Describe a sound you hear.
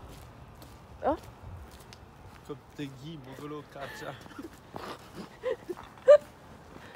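A young man speaks casually and laughs close by.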